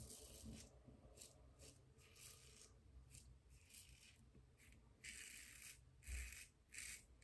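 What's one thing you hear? A razor scrapes through stubble in short strokes, close by.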